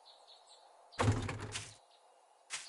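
A wooden chest lid shuts with a thump.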